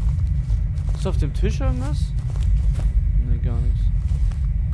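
A young man speaks briefly and expressively into a close microphone.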